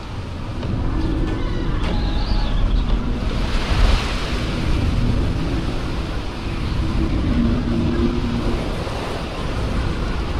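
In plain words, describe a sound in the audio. Strong wind roars and gusts through a snowstorm outdoors.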